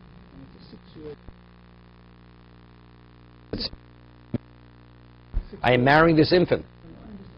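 An elderly man speaks calmly and expressively into a microphone, in bursts with pauses.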